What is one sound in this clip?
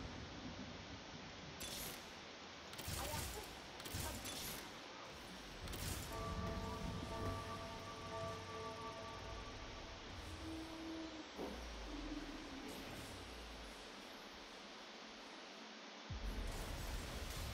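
Fantasy battle effects clash, zap and crackle in quick bursts.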